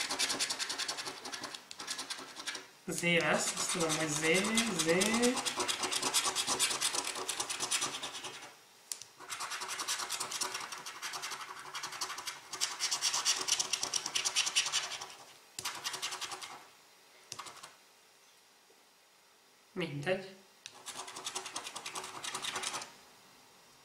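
A coin scratches rapidly across a scratch card in quick rasping bursts.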